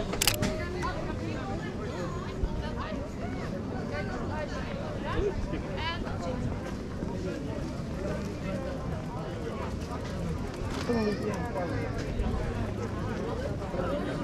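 Footsteps scuff on paving nearby.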